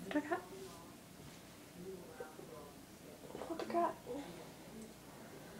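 A girl speaks softly close to the microphone.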